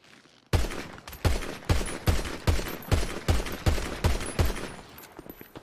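A pistol fires a rapid series of loud shots.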